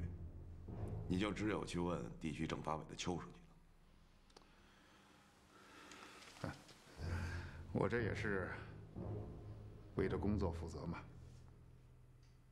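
A younger man answers calmly, close by.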